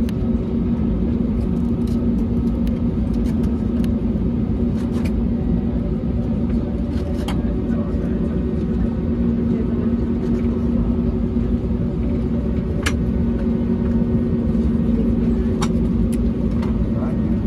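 The jet engines of an Airbus A320neo hum at low power, heard from inside the cabin as the airliner taxis.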